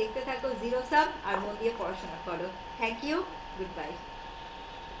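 A woman speaks with animation into a microphone, close by.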